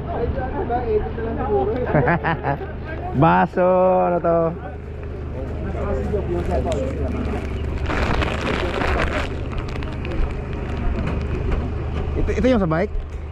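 Several men talk nearby, outdoors.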